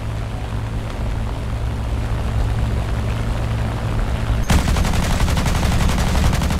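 A propeller aircraft engine drones steadily.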